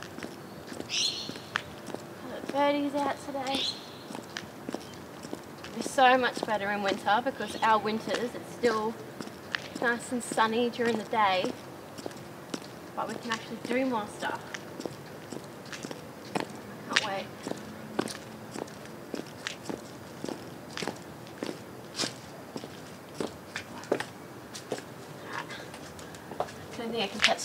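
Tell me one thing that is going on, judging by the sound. High heels click steadily on concrete.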